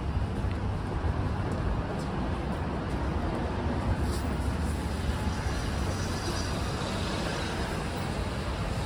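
A steady city hum and street noise fill the air outdoors.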